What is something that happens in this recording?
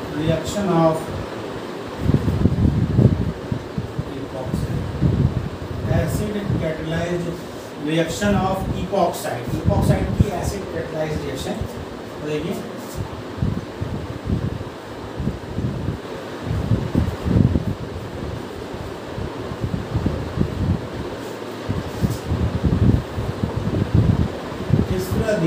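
A middle-aged man speaks calmly, explaining as he lectures close by.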